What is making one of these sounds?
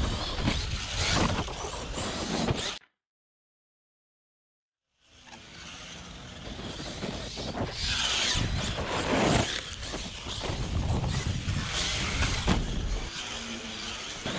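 A small electric motor whines loudly.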